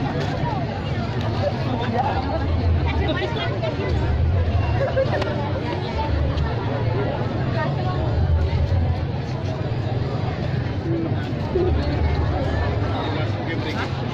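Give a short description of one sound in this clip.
A large crowd of men, women and children chatters outdoors, with many voices overlapping nearby.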